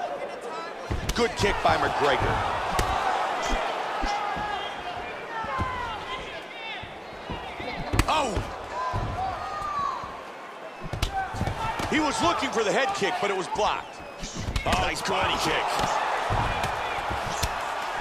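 Punches thud against bodies.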